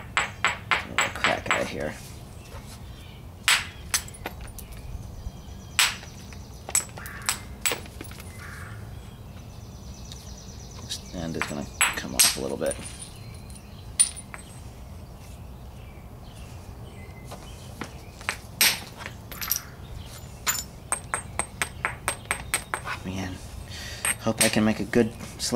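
A stone taps and clicks against stone in quick, sharp strikes.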